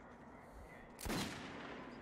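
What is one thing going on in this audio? A rifle shot cracks loudly and echoes.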